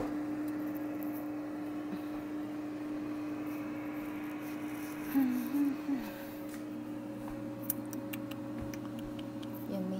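An air fryer hums steadily.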